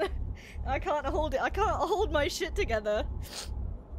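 A young woman laughs through tears.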